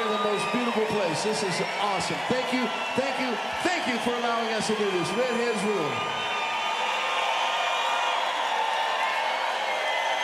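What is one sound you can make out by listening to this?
A large crowd cheers and roars at an outdoor concert.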